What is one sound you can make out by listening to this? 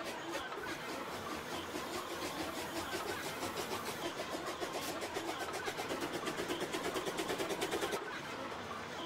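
A steam locomotive chuffs steadily as it approaches, growing louder.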